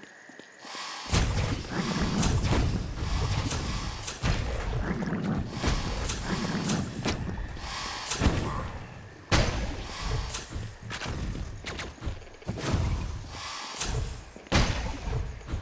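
Electronic game sound effects of swords slashing and blasts going off sound rapidly and loudly.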